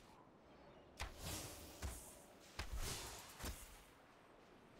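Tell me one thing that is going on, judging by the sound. Spell blasts and magical impacts burst loudly several times.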